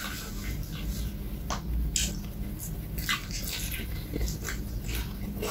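A man chews food with wet, crunchy smacking sounds close to a microphone.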